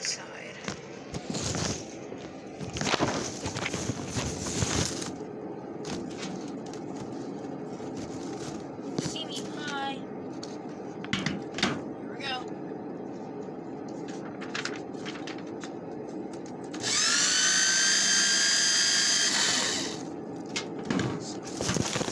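Hands fumble with a small plastic device, making clicks and rustles close by.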